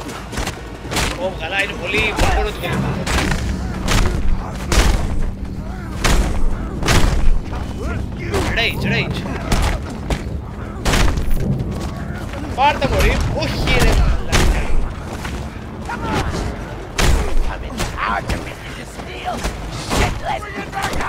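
Men grunt and shout.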